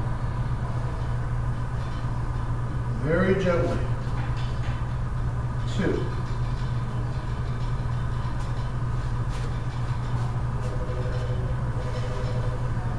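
Ceiling fans hum steadily.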